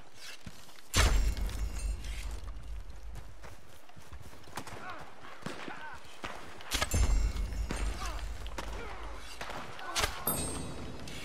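A rifle fires several loud shots that echo outdoors.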